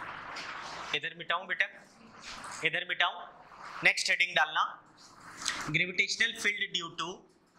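A young man speaks calmly and clearly into a clip-on microphone.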